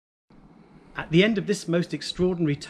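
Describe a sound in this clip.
An older man speaks calmly and clearly, close by.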